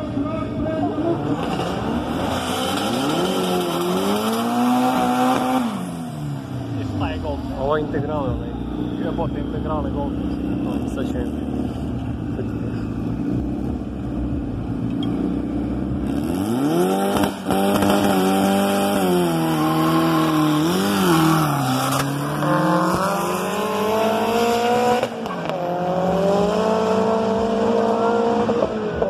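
Car engines rev loudly, rising and falling in pitch.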